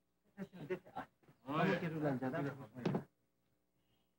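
An elderly man calls out loudly nearby.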